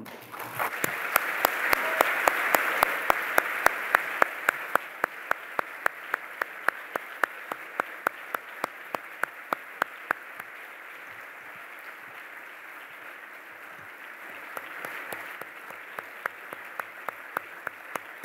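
A man claps his hands close to a microphone.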